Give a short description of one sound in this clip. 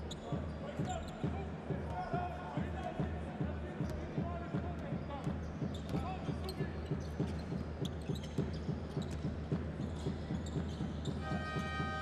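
A basketball bounces steadily on a hard court.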